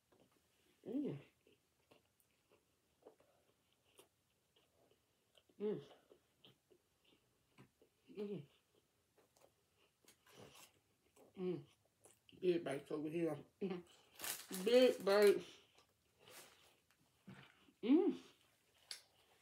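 A young woman chews food with wet, smacking sounds.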